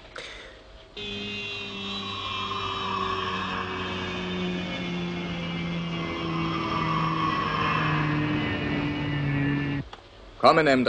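A spacecraft's rocket engine roars steadily as it hovers and lands.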